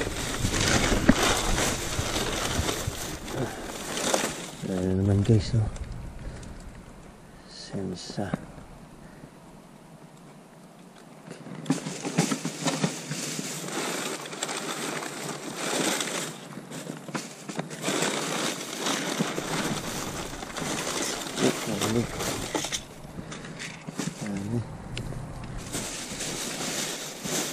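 Plastic bags rustle and crinkle close by as they are rummaged through.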